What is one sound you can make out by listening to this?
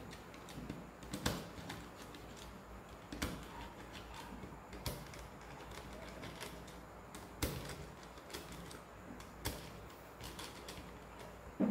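A screwdriver clicks and scrapes against small screws.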